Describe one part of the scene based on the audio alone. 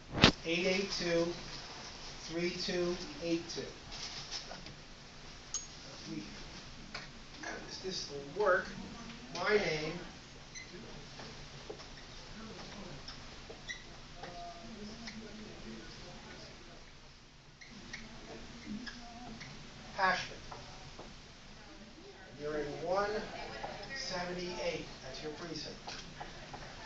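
A man speaks to a small group in a room, heard from a few metres away.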